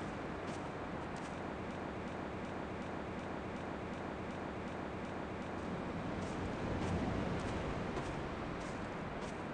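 Footsteps crunch on a gravel path at a steady pace.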